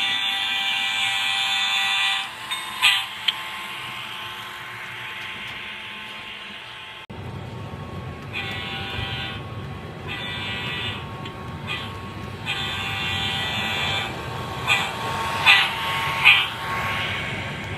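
Model train wheels click over rail joints.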